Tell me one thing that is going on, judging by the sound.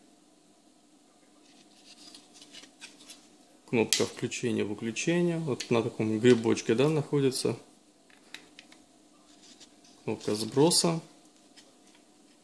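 Small plastic parts click and rattle softly as they are handled.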